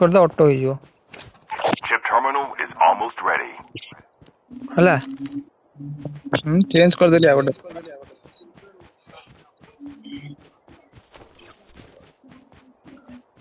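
Footsteps run over grass and dirt.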